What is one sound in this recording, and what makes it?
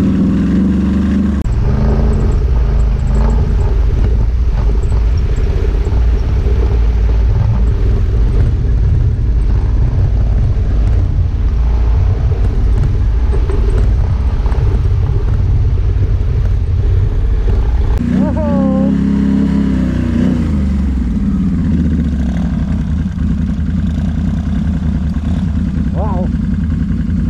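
Another quad bike engine drones ahead, revving now and then.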